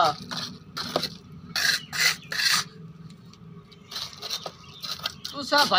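A trowel scrapes and rasps across wet gritty concrete.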